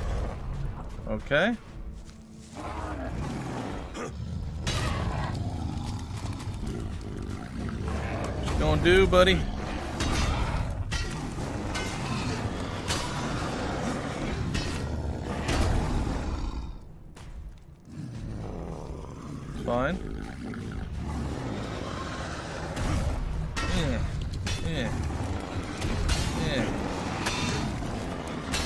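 Metal blades clash and strike with heavy thuds.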